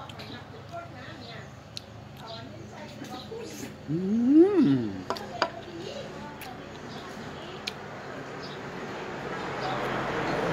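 A man smacks his lips while eating.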